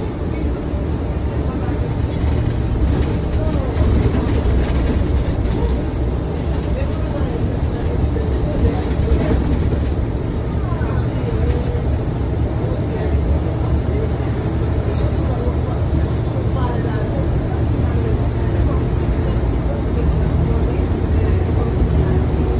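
A bus body rattles and creaks over the road.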